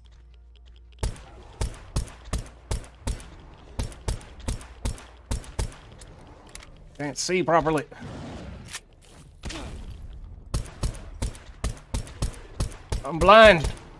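A pistol fires shot after shot in quick succession.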